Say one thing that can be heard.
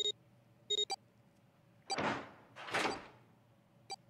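A mechanical dial clicks and whirs as a hand turns it.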